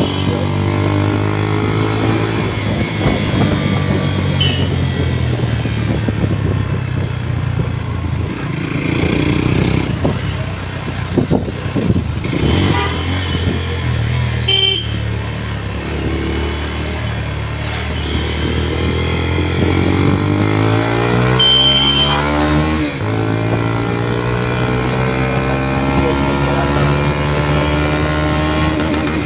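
A motorcycle engine drones close by, rising and falling in pitch as it speeds up and slows down.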